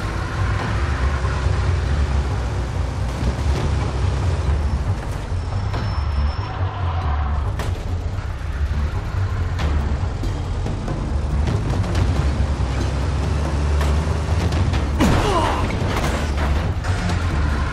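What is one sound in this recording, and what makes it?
Car tyres crunch and slide on snow.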